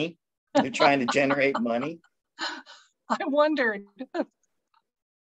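An older woman laughs through an online call.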